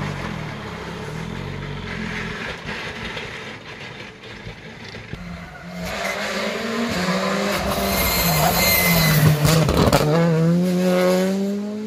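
A rally car's engine roars and revs hard as the car races past close by.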